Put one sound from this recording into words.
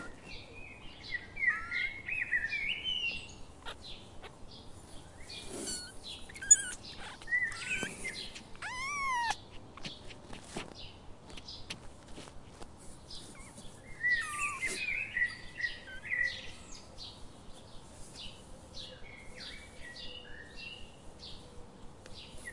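A rabbit nibbles softly at food on the ground.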